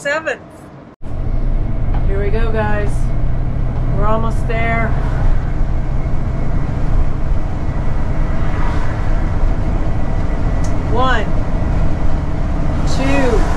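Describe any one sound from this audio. A vehicle engine hums steadily while driving on a road.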